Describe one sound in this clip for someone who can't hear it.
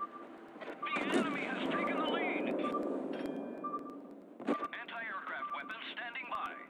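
Heavy naval guns fire with deep, rumbling booms.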